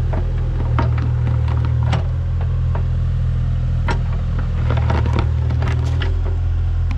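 Stone scrapes and knocks against soil and rock.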